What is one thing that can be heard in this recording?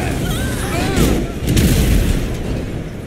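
A body thuds hard onto the road.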